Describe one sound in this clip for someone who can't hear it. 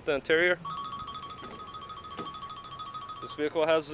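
A car door unlatches and swings open.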